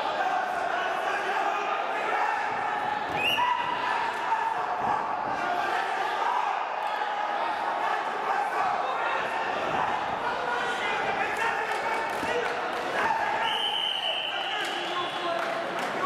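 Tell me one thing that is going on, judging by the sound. A large crowd murmurs and calls out in an echoing hall.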